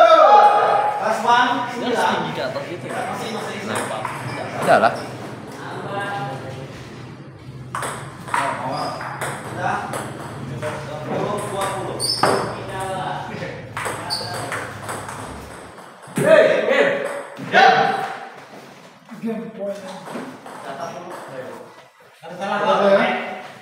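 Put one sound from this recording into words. Several men talk with animation nearby.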